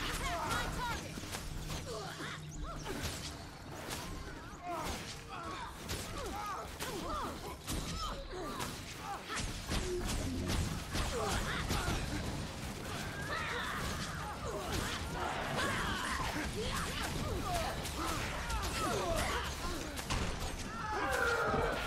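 Magic spells crackle and burst in a fight.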